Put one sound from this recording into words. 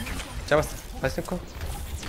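A revolver's cylinder clicks during a reload.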